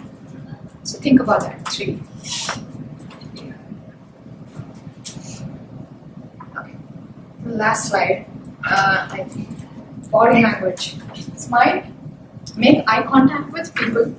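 A young woman speaks calmly into a microphone.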